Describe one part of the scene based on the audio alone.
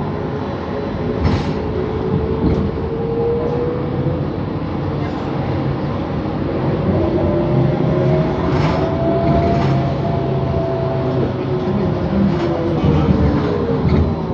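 A bus engine hums and whines steadily while driving.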